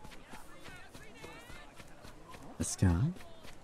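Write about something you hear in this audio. Footsteps patter quickly on a dirt street.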